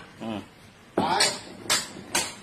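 A hammer strikes metal in sharp knocks.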